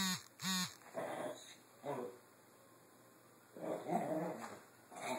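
A small dog growls and snuffles playfully.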